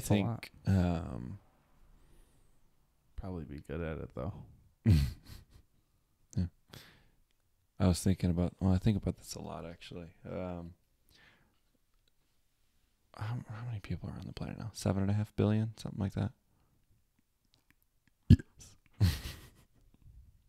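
A young man talks calmly and closely into a microphone.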